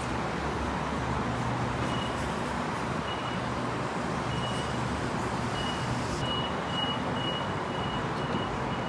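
A stationary train hums steadily.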